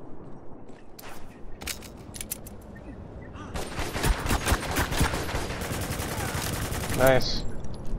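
A pistol fires a rapid series of sharp shots.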